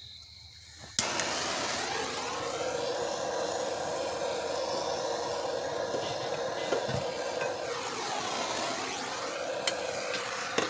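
A power tool whirs steadily close by.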